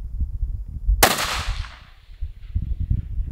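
A rifle fires a single loud shot that echoes away outdoors.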